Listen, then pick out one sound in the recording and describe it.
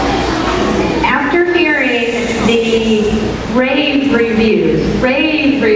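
A woman speaks into a microphone through a loudspeaker.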